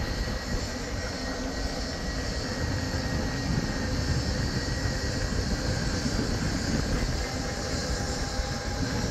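Wind rumbles and buffets against the microphone outdoors.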